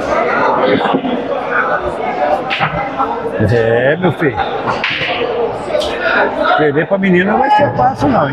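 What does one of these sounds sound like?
A crowd of men talks and murmurs loudly nearby.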